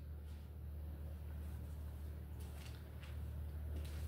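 A page of paper is turned and rustles.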